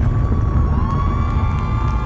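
An orchestra plays music.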